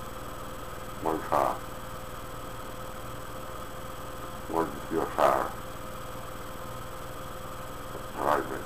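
A man speaks briefly in short bursts close by.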